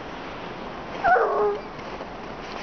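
A dog yelps and whines briefly.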